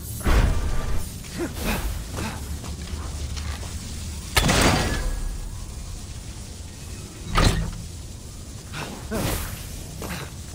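Magical energy whooshes and bursts.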